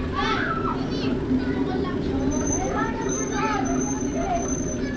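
A group of children chat nearby outdoors.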